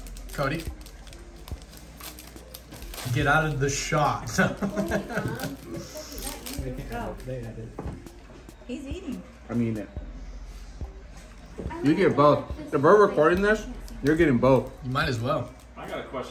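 A foil pack crinkles and tears as hands rip it open.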